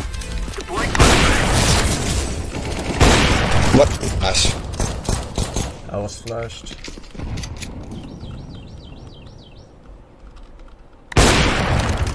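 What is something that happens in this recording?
Sniper rifle shots crack loudly.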